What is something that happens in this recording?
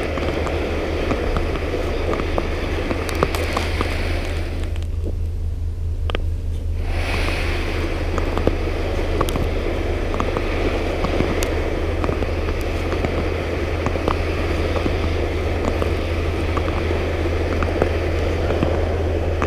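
Skates scrape and hiss over ice.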